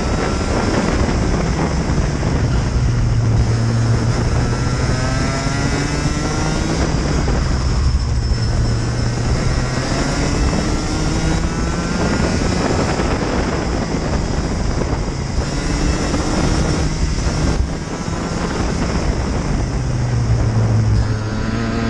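A kart engine buzzes loudly close by, rising and falling in pitch as it speeds up and slows.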